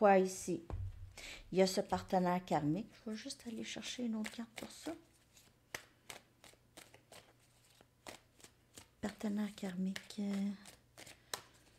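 A woman speaks calmly, close to the microphone.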